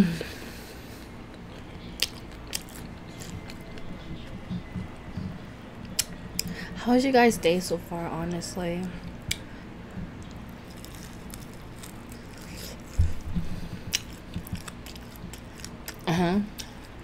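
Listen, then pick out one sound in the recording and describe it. Crispy food crunches and crackles as a young woman bites and chews.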